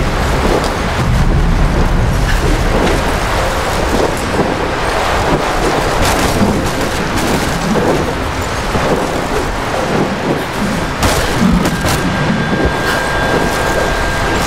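A strong wind roars steadily.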